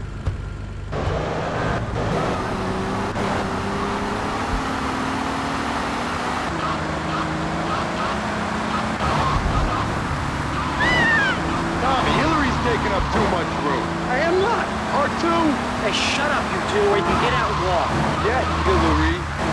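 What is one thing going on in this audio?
A car engine hums steadily as a car drives along a road.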